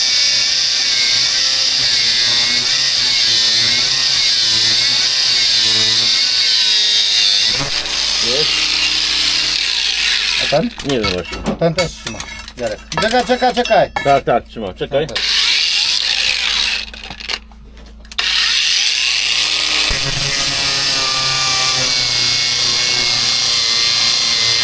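An angle grinder cuts through metal with a loud, high whine.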